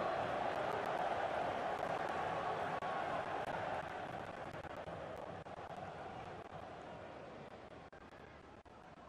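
A large crowd cheers loudly, then slowly fades.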